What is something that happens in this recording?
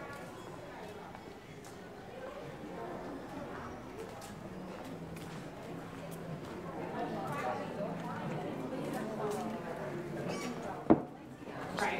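Footsteps tap on a stone pavement.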